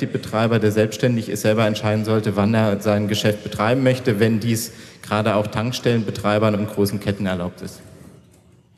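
A young man speaks calmly through a microphone on a loudspeaker system.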